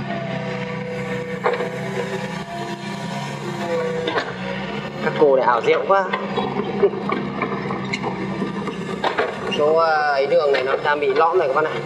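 An excavator bucket scrapes and drags through soil.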